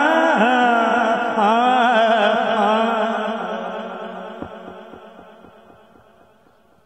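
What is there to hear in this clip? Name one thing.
A man chants melodiously into a microphone, loud over a loudspeaker, then trails off and fades.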